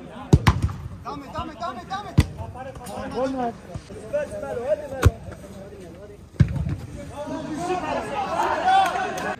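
Men shout and call out across an outdoor pitch.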